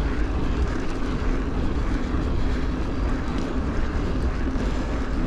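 Bicycle tyres hum steadily on asphalt.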